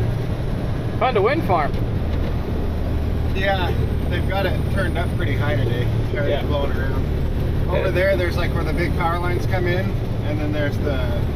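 A man talks casually, close by.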